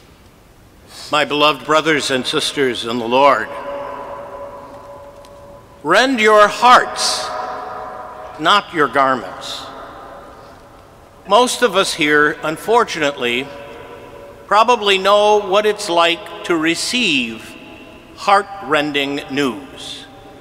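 An elderly man speaks calmly into a microphone, his voice echoing through a large hall.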